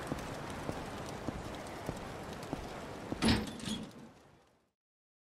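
Footsteps tap on pavement as a man walks.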